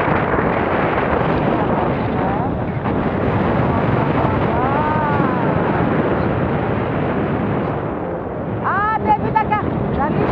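Strong wind roars steadily past the microphone.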